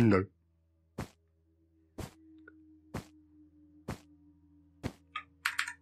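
Footsteps thud slowly on stone.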